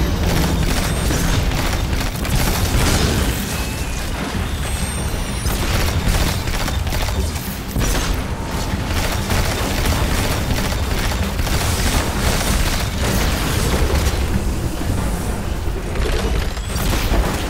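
Rapid gunfire rattles over and over.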